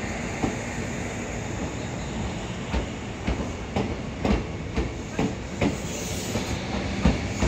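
A train rolls slowly past with a steady rumble.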